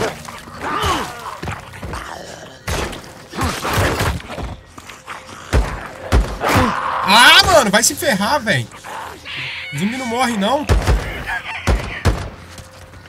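Snarling creatures growl and shriek.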